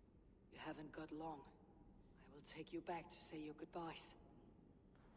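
An elderly man speaks gruffly and calmly, close by.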